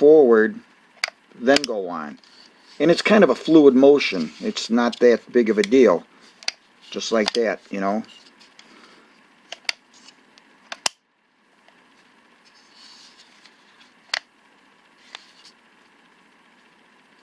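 Hands grip a plastic power tool with soft clicks and knocks.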